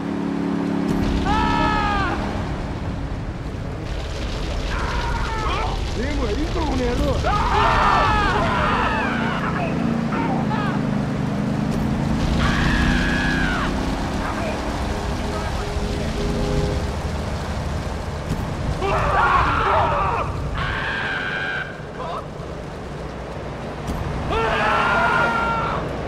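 A flamethrower roars in loud bursts.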